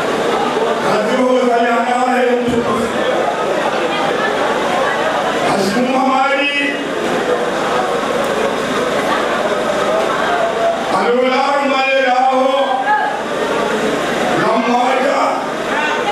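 An elderly man sings loudly into a microphone through a loudspeaker.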